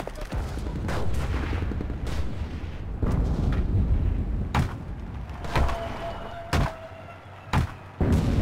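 A hammer knocks sharply several times.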